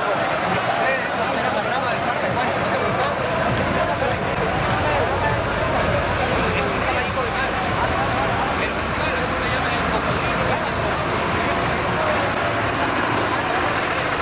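A tractor engine rumbles close by.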